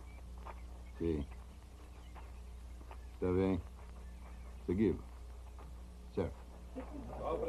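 A man speaks in short phrases into a telephone.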